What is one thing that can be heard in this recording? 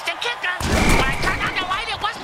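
Players collide with a heavy thud.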